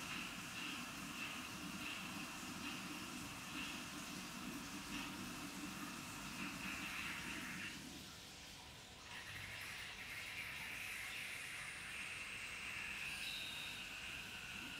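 Water rushes steadily from a tap.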